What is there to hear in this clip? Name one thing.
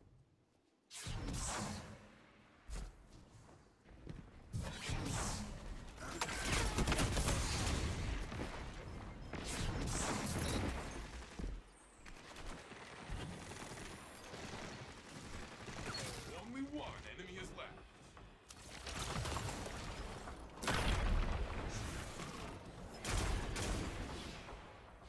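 Gunfire cracks in loud, rapid bursts.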